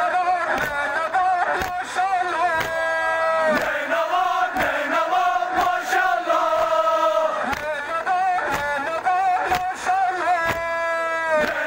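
A crowd of men chant together in answer.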